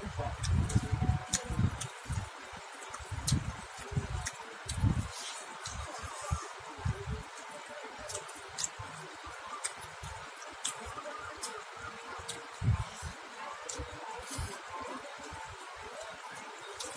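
A man chews food noisily up close.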